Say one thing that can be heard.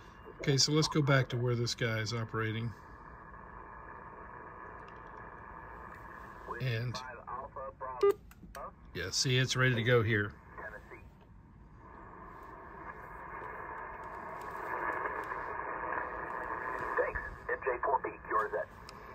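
Radio static hisses steadily.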